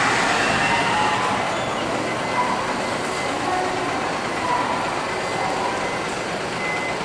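A bus engine rumbles as it pulls slowly away.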